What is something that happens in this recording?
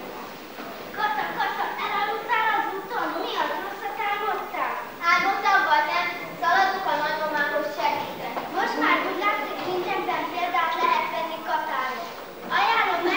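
A young girl speaks loudly and clearly, as if performing on stage.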